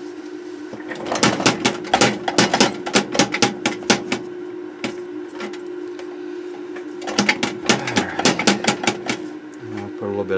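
A cloth scrubs quickly against a circuit board.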